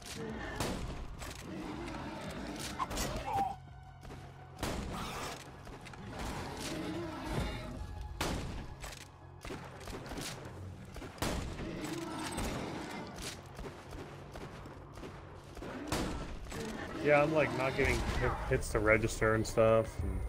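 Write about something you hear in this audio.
Creatures growl and roar.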